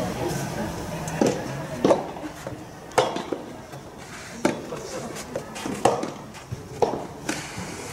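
A tennis ball is struck back and forth with sharp pops.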